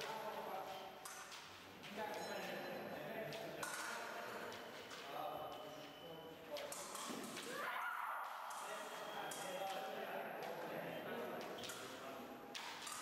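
Fencing blades clash and clatter.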